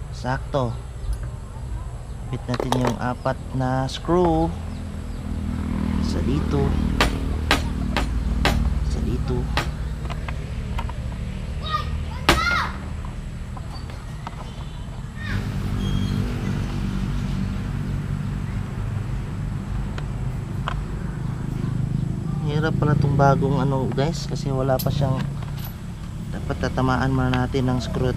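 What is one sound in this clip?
Small metal parts click and clatter.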